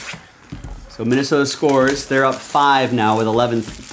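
Plastic wrapping crinkles as it is torn off a box.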